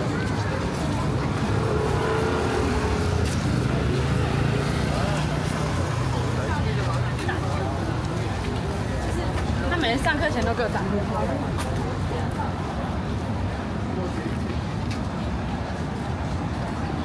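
Footsteps tap on wet paving.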